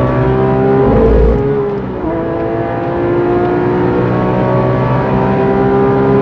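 A car engine roars loudly from inside the car, its pitch climbing and dropping briefly at each gear change.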